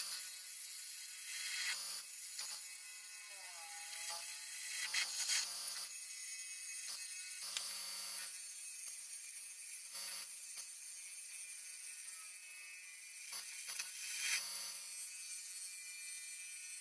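A gouge scrapes and hisses against spinning wood.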